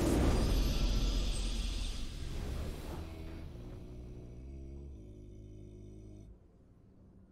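A triumphant victory fanfare bursts out loudly, then sustains and fades away.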